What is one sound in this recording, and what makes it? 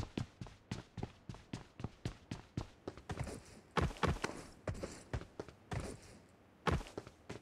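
A game character's footsteps run on a hard floor.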